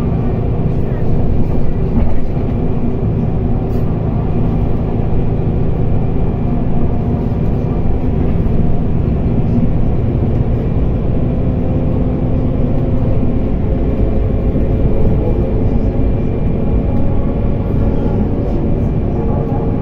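A bus engine hums steadily from inside, heard through a window.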